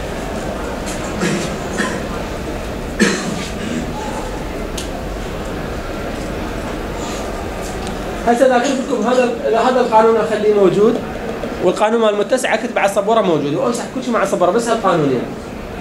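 A man lectures calmly nearby, with pauses.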